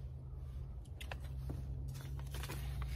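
A paper seed packet rustles.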